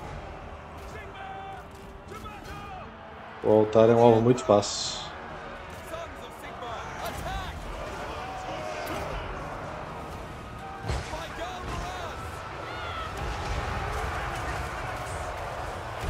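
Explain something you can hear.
Battle noise of clashing weapons plays in the background.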